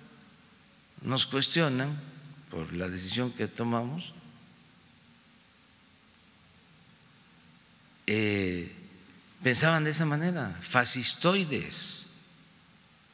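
An elderly man speaks calmly into a microphone, in bursts with pauses.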